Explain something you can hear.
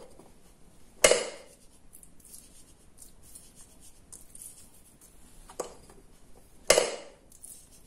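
A bowl knocks against a wooden board a few times.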